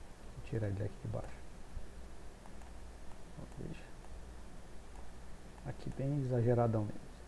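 A man speaks calmly into a microphone, explaining.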